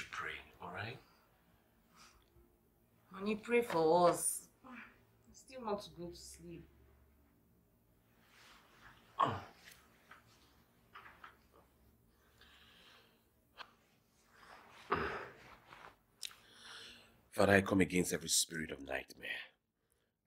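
A man speaks softly and emotionally, close by.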